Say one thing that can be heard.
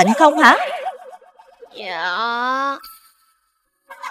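A cartoon boy speaks in a high voice.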